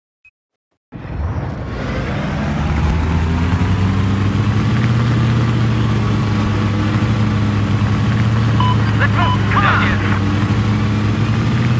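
A boat engine drones steadily over water.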